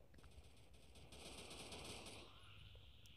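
A rifle fires a short burst of gunshots.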